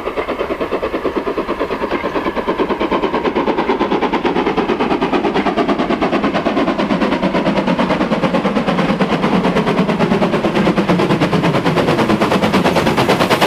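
A steam locomotive chuffs rapidly and rhythmically as it approaches, growing louder.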